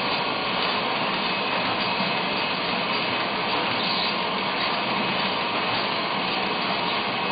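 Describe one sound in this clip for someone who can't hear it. A packaging machine hums and whirs steadily.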